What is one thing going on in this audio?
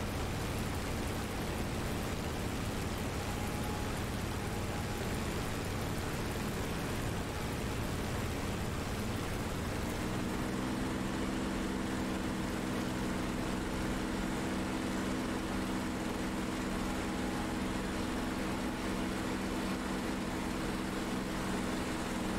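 A propeller engine drones steadily, its pitch rising partway through.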